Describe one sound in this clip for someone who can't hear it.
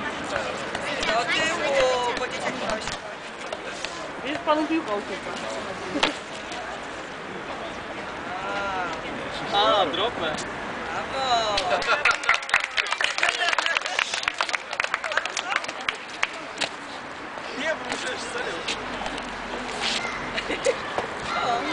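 Children and adults chatter nearby outdoors.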